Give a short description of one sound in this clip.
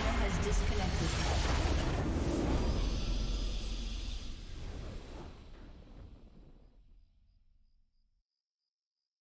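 A triumphant game fanfare swells and fades out.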